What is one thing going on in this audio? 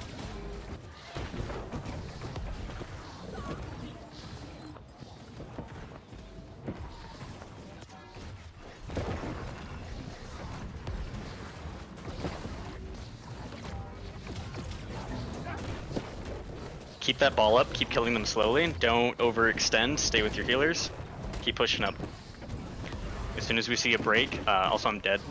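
Magic spells whoosh and crackle in a fierce fight.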